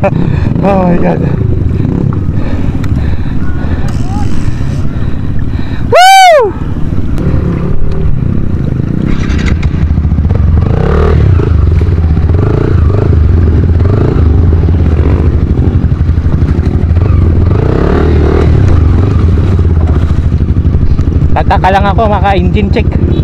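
River water rushes and splashes over stones.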